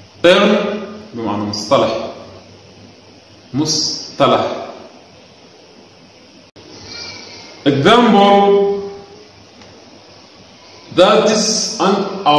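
A man speaks clearly into a close microphone, pronouncing words one at a time.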